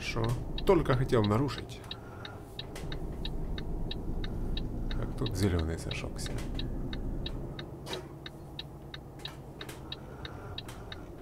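A turn signal ticks in an even rhythm.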